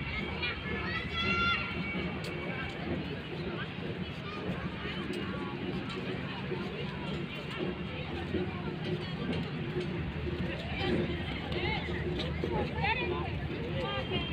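Footsteps scuff on paving.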